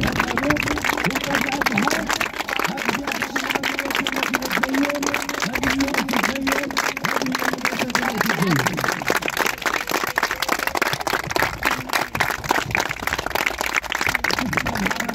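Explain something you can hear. A group of children claps rapidly and steadily outdoors.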